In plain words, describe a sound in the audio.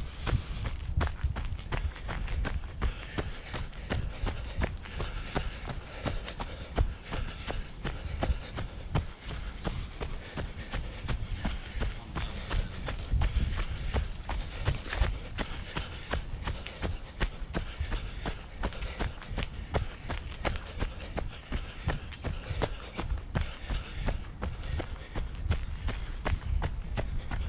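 Footsteps crunch and rustle through dry leaves on a path.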